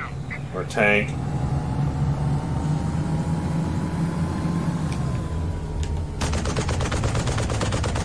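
A heavy vehicle engine rumbles low and steady.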